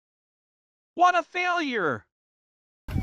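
A young woman exclaims loudly nearby.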